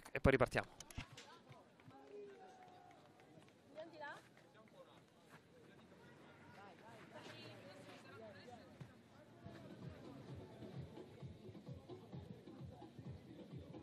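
Players call out across an open field, heard far off.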